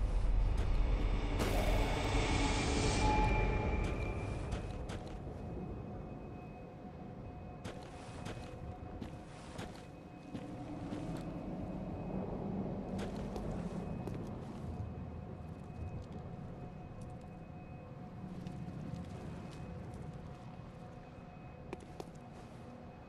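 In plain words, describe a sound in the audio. Footsteps crunch softly on snowy ground.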